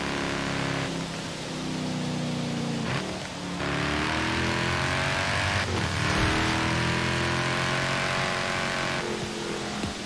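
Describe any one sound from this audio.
A sports car engine roars, revving up and down through gear shifts.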